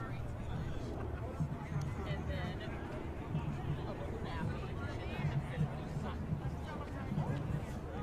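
A group of men and women chat casually nearby while walking.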